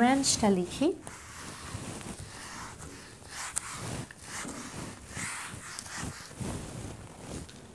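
A cloth rubs and squeaks across a whiteboard.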